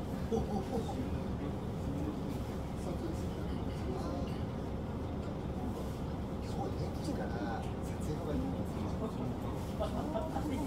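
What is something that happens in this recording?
A young woman talks quietly nearby.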